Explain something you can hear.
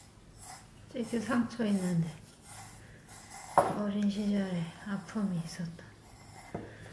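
A young woman talks softly nearby.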